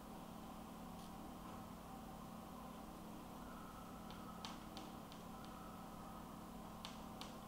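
A pen scratches and taps on paper.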